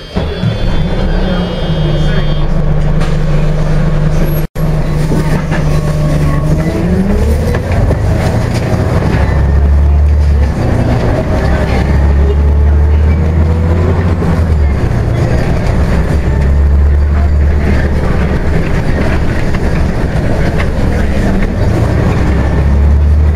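A bus engine hums steadily and revs up as the bus pulls away.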